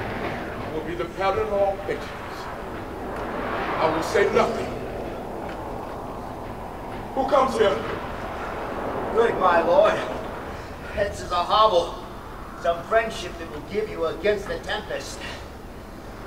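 A man speaks expressively nearby, as if acting a part.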